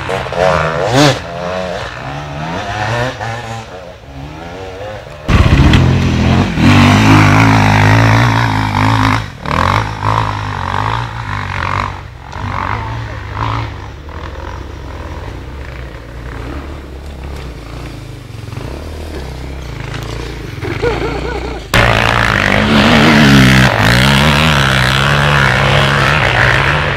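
A dirt bike engine revs and roars nearby, rising and falling in pitch.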